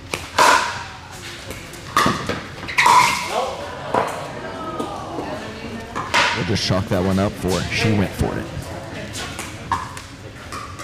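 Paddles strike a plastic ball with sharp pops that echo in a large hall.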